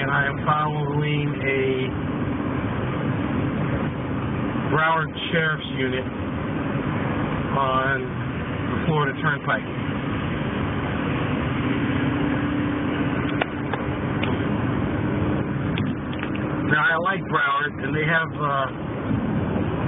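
Tyres roar on a highway road.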